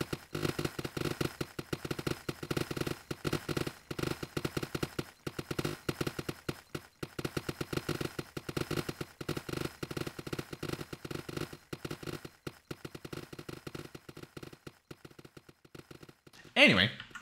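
Quick, rapid footsteps clatter while climbing a ladder.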